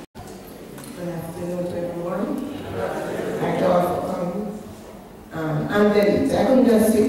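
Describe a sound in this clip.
A woman speaks calmly through a microphone over loudspeakers.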